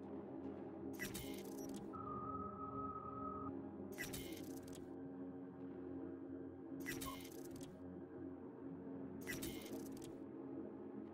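Short whooshing menu sounds play as items are selected.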